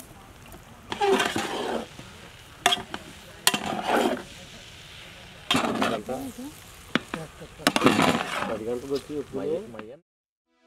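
A metal ladle scrapes and stirs rice in a large metal pot.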